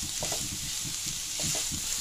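A metal spatula scrapes and stirs food in a frying pan.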